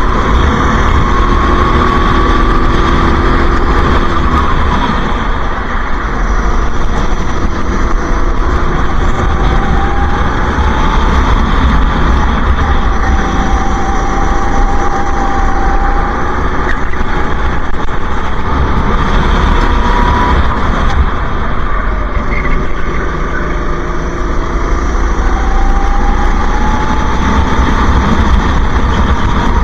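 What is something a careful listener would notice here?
A kart engine whines loudly up close, rising and falling in pitch as it speeds up and slows.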